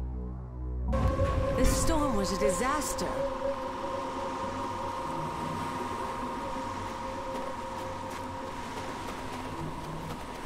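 Waves wash gently onto a beach.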